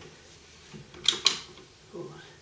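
Metal parts of a rifle click as hands handle it.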